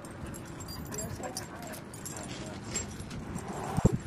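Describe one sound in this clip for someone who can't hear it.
Dogs scuffle and play on a hard floor, with their paws scraping.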